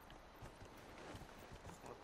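A horse's hooves clop on dirt.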